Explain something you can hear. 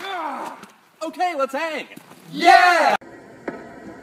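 A young man shouts excitedly up close.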